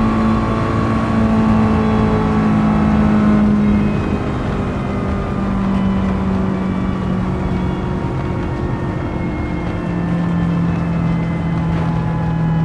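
A racing car engine drones loudly at high speed, its pitch slowly sinking.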